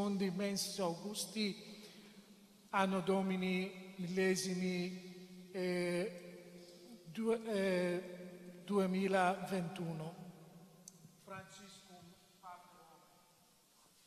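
A young man chants into a microphone, echoing in a large hall.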